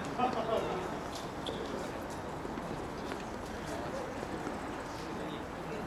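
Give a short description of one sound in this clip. A tennis racket strikes a ball during a rally.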